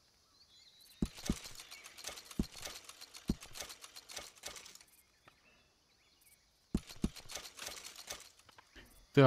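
Coins clink in quick bursts.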